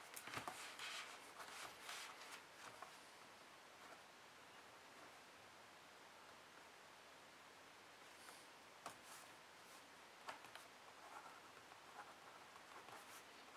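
A pen scratches faintly on paper.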